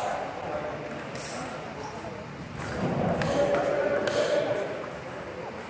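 A table tennis ball clicks back and forth off paddles and the table.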